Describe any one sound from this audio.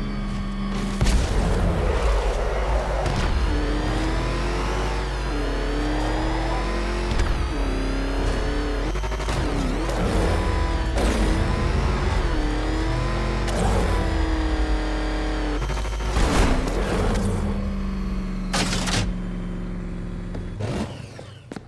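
A powerful car engine roars and revs as a vehicle speeds along.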